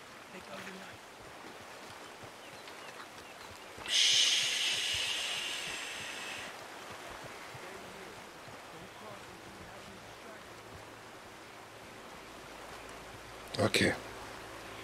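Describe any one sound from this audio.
Tall grass rustles as someone moves through it in a crouch.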